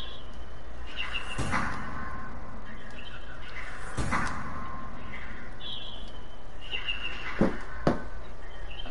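Soft menu chimes and clicks sound as options are selected.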